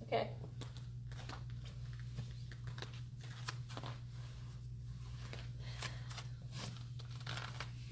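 Bedding rustles as a woman rolls over on a mat.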